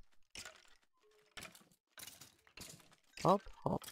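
Short hits thud as a sword strikes a rattling skeleton.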